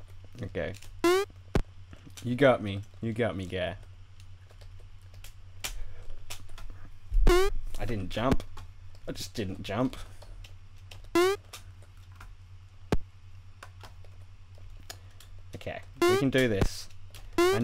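A springy game jump sound boings upward now and then.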